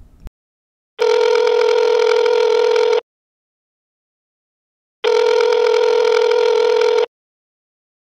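A phone rings with a steady, repeating call tone.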